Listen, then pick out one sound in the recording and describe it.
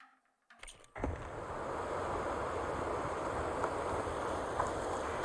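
Water rushes steadily over rocks close by.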